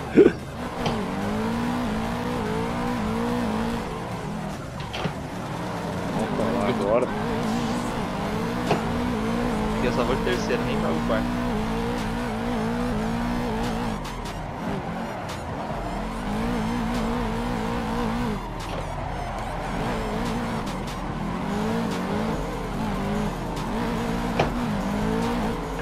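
A race car engine roars and revs up and down, rising and falling in pitch.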